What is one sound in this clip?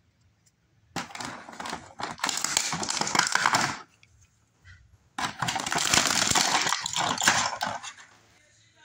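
Stiff plastic packaging crinkles and rustles close by.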